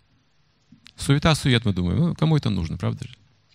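An older man speaks with animation into a microphone, heard through a loudspeaker.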